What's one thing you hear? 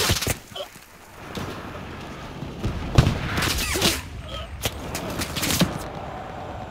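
Gunshots crack in sharp bursts.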